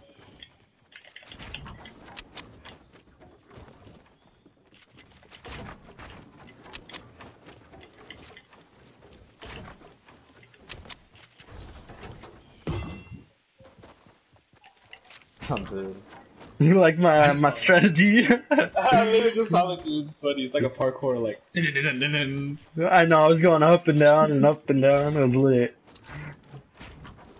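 Wooden panels snap into place with quick, hollow knocks.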